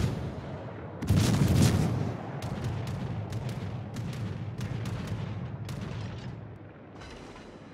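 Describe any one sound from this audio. Shells explode with rumbling blasts.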